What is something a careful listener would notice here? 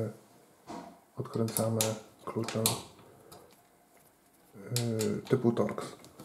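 A hex key scrapes and turns a metal screw.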